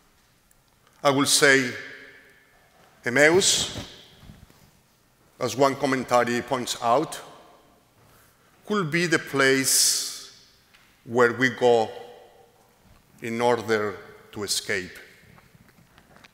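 A man preaches slowly into a microphone, his voice echoing in a large hall.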